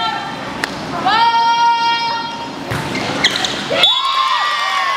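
A volleyball is struck with a thump.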